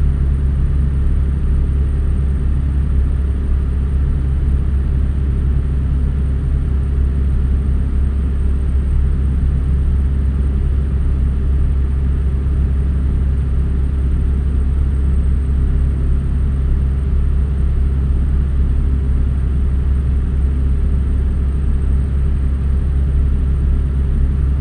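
Tyres roll and hum on the road.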